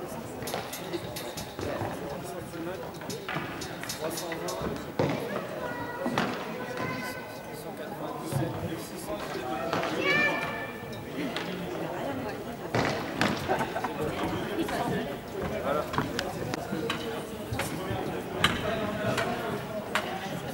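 Young men talk and call out together in a huddle, in a large echoing hall.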